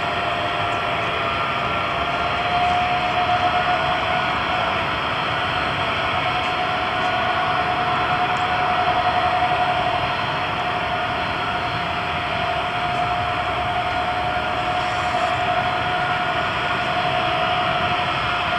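Jet engines of a large plane roar and whine steadily nearby.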